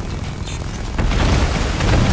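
An armored vehicle's cannon fires.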